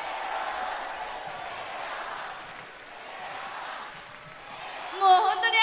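A large crowd cheers in a big echoing hall.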